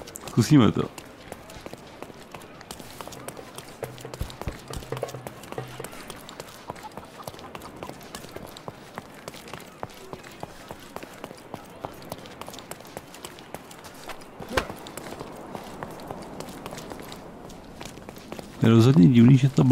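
Footsteps run quickly over stone paving.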